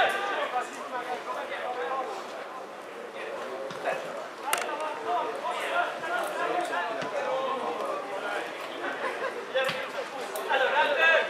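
Footballers shout to each other across an open pitch.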